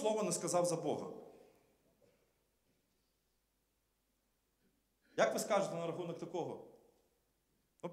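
A man speaks through a microphone in a large echoing hall, pausing between phrases.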